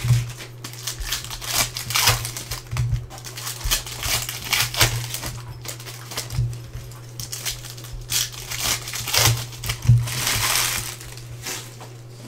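Foil packs crinkle and rustle in hands.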